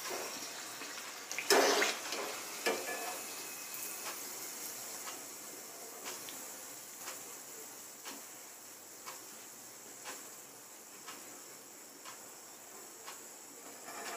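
Hot oil sizzles and crackles in a pan, slowly quietening.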